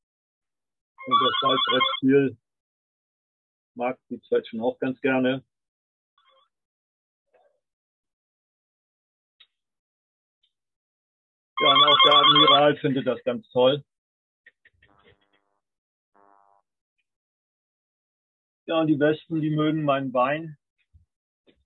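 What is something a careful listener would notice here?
An elderly man speaks calmly through an online call, in short bursts with pauses.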